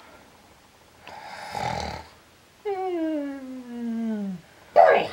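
A young man snores loudly, close by.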